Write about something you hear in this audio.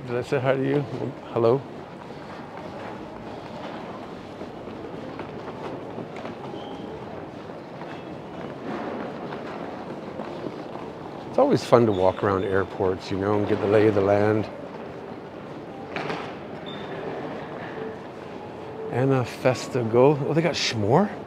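A low steady hum fills a large echoing hall.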